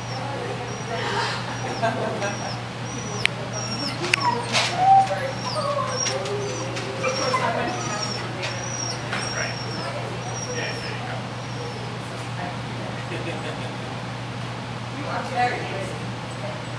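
A woman calls out to a dog with animation in a large echoing hall.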